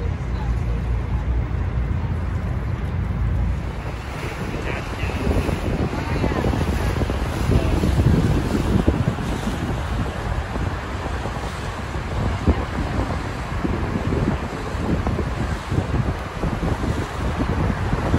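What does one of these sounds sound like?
Wind buffets steadily outdoors.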